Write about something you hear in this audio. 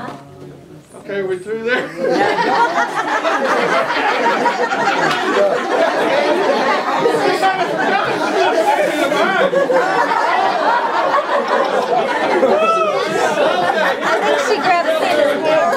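A crowd of adults chatters and laughs nearby in a small room.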